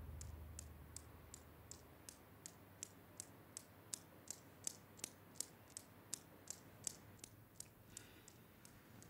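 Metal balls click against each other in a steady rhythm.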